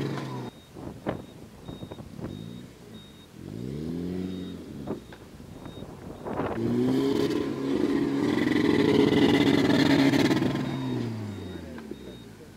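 An engine revs hard and roars.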